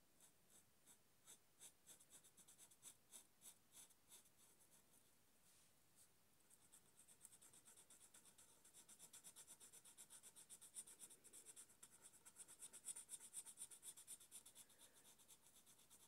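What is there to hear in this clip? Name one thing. A marker squeaks and scratches on paper in quick, short strokes.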